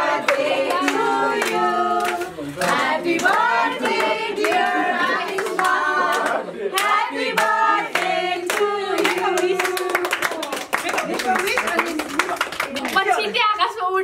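A group of young men and women sing together cheerfully up close.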